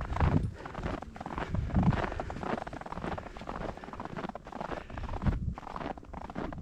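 A dog's paws crunch through fresh snow.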